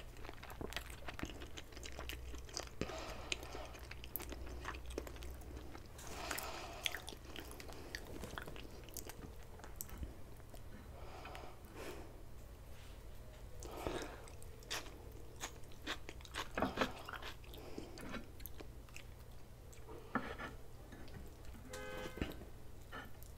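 A man chews food noisily, close to a microphone.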